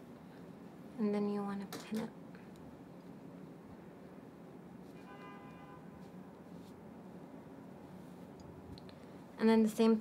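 A young woman speaks briefly and calmly, close by.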